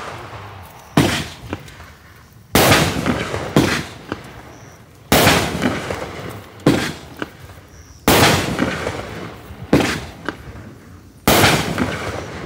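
Single firework shells burst with loud bangs, one after another.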